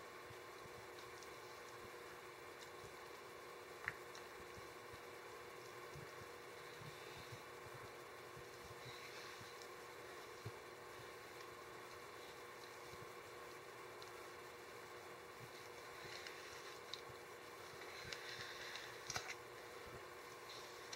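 A stick stirs thick paint in a bucket with soft squelching and scraping.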